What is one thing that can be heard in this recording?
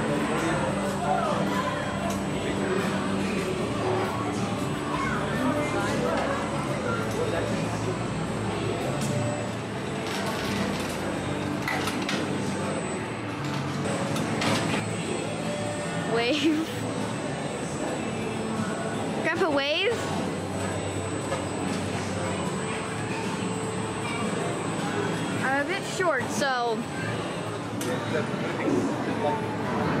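Arcade machines chime and jingle.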